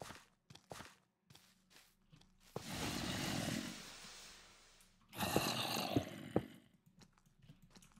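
Stone blocks crunch and break in a game.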